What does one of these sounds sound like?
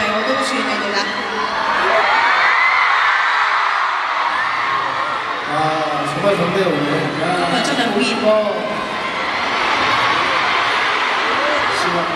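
A large crowd screams and cheers in a big echoing arena.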